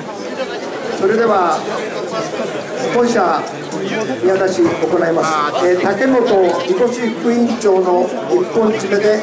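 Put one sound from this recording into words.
Several men chant loudly together in rhythm.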